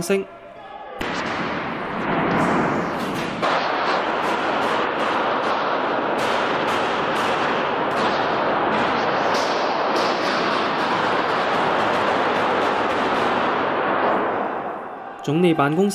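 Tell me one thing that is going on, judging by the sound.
Gunshots ring out and echo loudly through a large hall.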